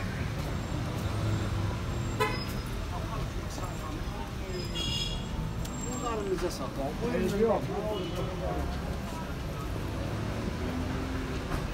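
Footsteps of passersby patter on pavement.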